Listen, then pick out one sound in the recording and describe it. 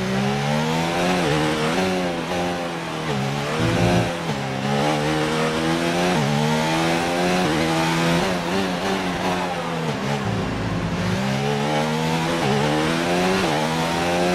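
A racing car engine screams, rising and falling in pitch as it shifts gears and brakes into corners.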